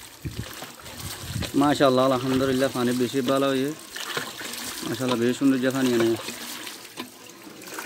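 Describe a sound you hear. Water gushes from a hand pump and splashes into metal pots.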